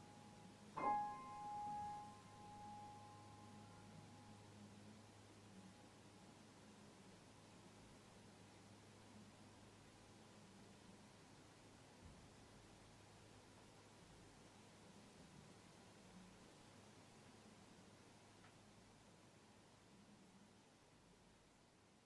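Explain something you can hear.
A piano plays soft, quiet notes.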